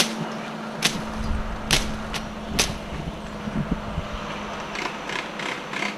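A blade slashes through tangled vines in sharp swishes.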